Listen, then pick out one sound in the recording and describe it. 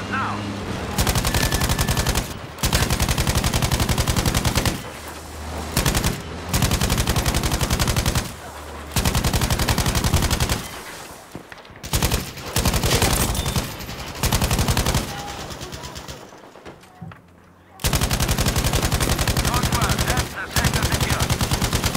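A heavy machine gun fires in long rapid bursts.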